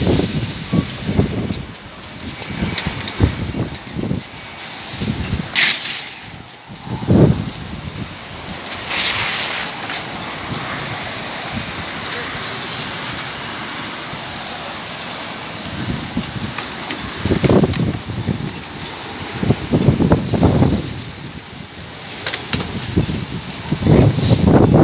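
A plastic cover flaps and rustles in the wind.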